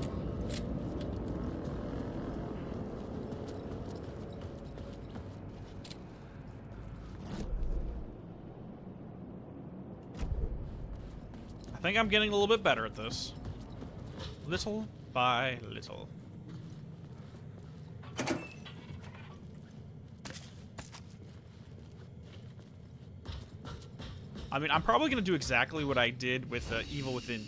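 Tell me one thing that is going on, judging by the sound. A man's footsteps tread on a hard floor.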